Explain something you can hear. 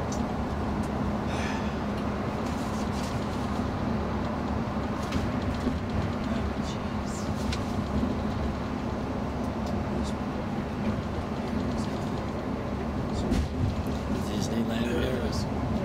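A vehicle's engine drones steadily from inside the cab.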